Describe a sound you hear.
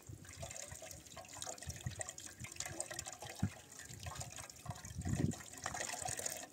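Potatoes knock and clink against a metal pot as they are washed.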